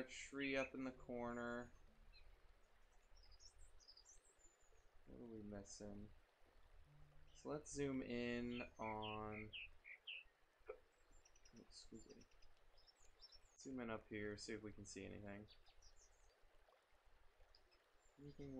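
A man talks calmly into a close microphone, pausing between phrases.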